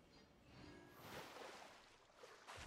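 Water splashes softly.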